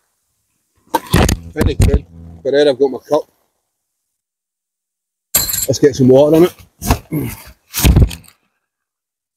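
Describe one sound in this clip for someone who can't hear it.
A microphone thumps and rustles as it is handled.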